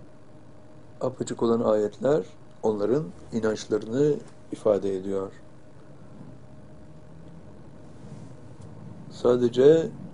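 An elderly man speaks calmly and slowly into a microphone, in short phrases with pauses.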